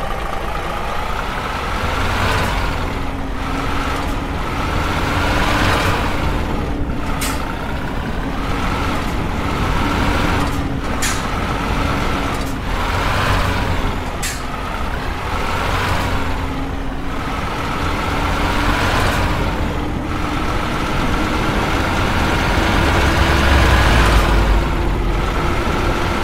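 A diesel semi truck engine revs up and shifts through gears.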